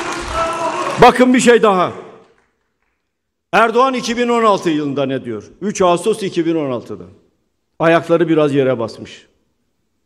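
An elderly man speaks forcefully through a microphone in a large hall.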